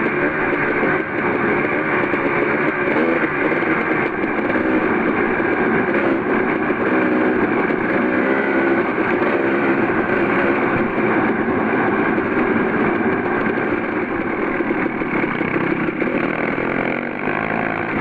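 A motorcycle engine revs and drones up close, rising and falling in pitch.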